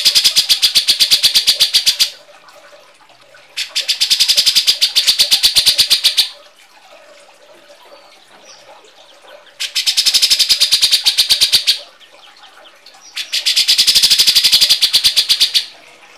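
A bird gives harsh, rapid chattering calls in repeated bursts.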